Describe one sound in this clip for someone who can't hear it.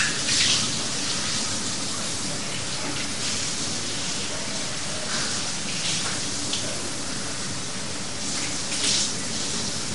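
A young man speaks quietly into a close microphone.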